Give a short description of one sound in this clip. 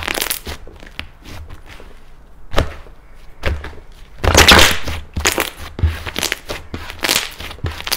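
Hands press and squish soft slime.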